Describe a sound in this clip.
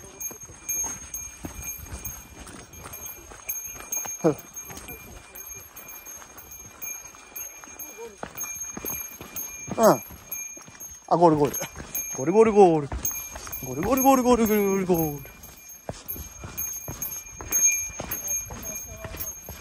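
Footsteps crunch steadily on a dirt trail.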